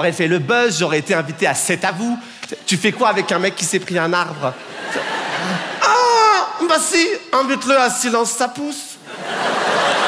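A young man speaks with animation into a microphone in a large hall.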